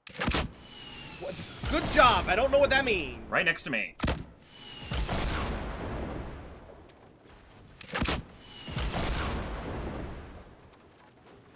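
Rockets explode with a loud boom that rumbles away.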